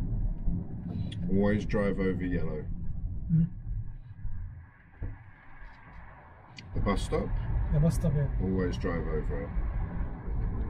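A man talks calmly inside a car, close by.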